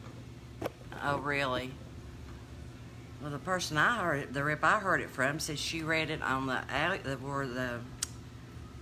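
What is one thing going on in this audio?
A middle-aged woman speaks calmly and close to the microphone.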